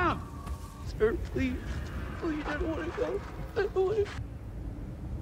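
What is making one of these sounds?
A man speaks quietly and with emotion.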